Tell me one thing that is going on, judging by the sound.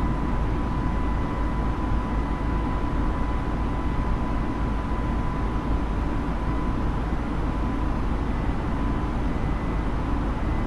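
An airliner's jet engines drone steadily with a deep rumble.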